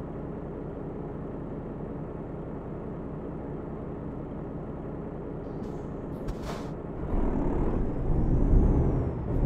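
A truck engine rumbles steadily while idling, then grows louder as it pulls away.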